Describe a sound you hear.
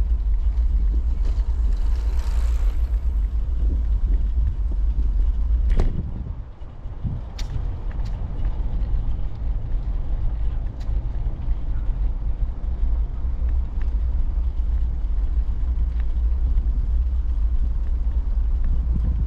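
Wind buffets the microphone outdoors with a steady low rumble.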